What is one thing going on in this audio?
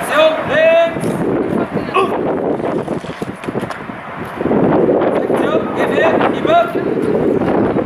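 A man shouts commands outdoors.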